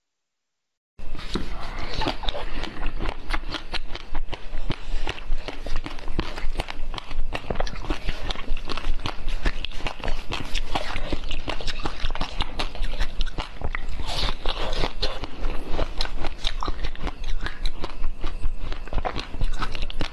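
A young woman chews crunchy food close to a microphone, with loud crackling bites.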